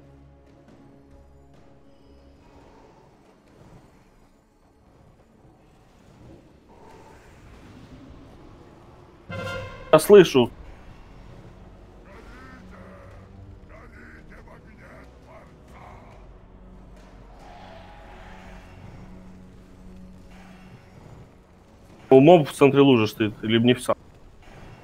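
Magic blasts and fire roar amid a clashing battle.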